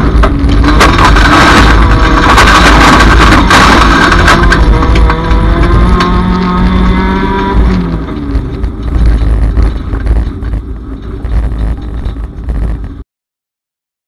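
A car engine roars loudly and revs up and down.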